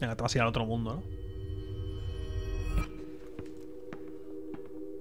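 A desk bell rings and its tone slowly dies away.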